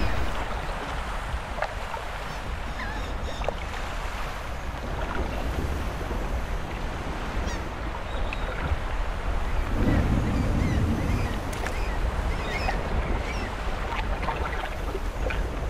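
Water splashes softly around feet.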